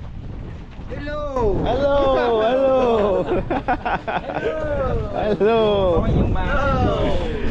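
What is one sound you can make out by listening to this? A young man talks loudly and excitedly close by.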